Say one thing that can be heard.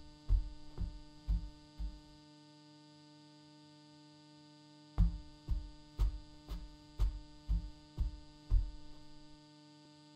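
A television hums steadily.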